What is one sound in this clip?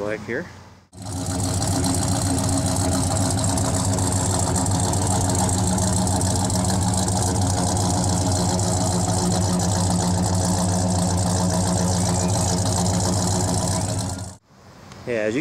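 A car engine idles with a deep, steady exhaust rumble close by.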